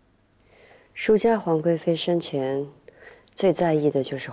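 A woman speaks deliberately.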